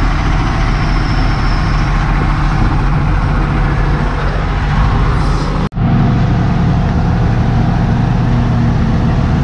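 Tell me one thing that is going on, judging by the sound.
A wheel loader's diesel engine runs under load.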